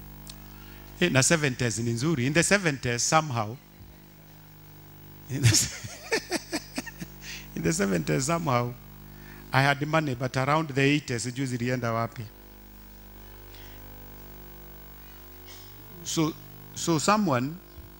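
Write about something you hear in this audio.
A man preaches with animation through a microphone, in bursts with pauses between.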